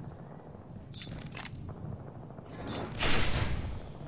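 A game menu closes with a soft whoosh.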